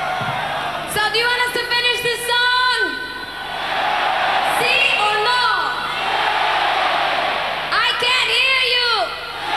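A woman sings loudly through loudspeakers.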